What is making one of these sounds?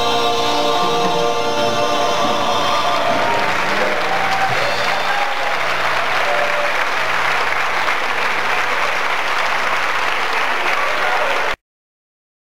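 Acoustic and electric guitars play along.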